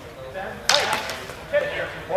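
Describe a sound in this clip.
Longswords clash together in a large echoing hall.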